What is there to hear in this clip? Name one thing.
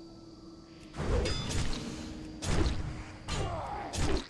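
Magic spells whoosh and burst with loud crackling impacts.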